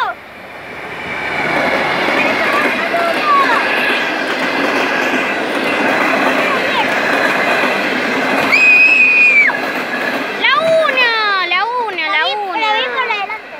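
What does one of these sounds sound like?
A train rumbles past close by, its wheels clattering and squealing on the rails.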